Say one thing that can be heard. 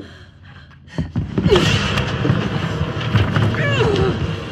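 Clothing rustles and bodies thump as two people struggle.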